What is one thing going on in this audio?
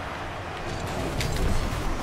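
A video game car's rocket boost roars.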